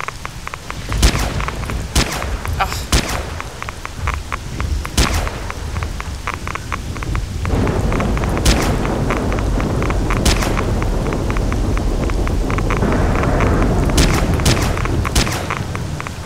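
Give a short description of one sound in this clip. A rifle fires sharp, loud shots again and again.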